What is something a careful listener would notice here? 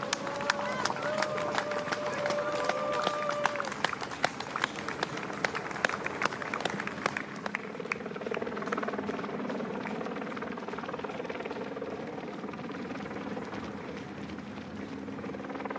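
Many runners' feet patter on the road.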